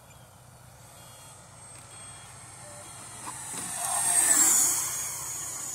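A model jet plane whines as it flies past close by, rising to a loud whoosh and then fading.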